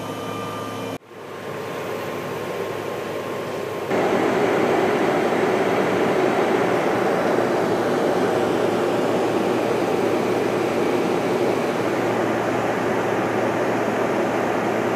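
A jet airliner's engines roar steadily inside the cabin, growing louder partway through.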